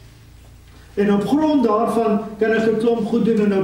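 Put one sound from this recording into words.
An elderly man speaks forcefully through a microphone.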